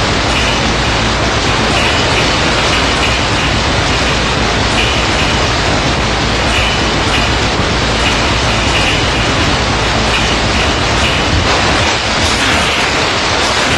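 Water rushes and churns steadily.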